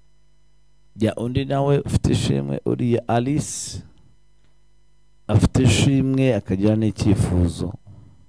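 A man speaks with animation into a microphone, in loud bursts.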